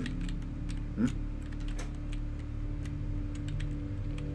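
A metal panel door clicks open.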